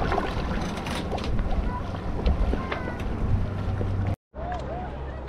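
A paddle dips and splashes in water.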